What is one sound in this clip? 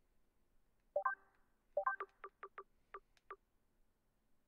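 Short electronic menu blips sound in quick succession.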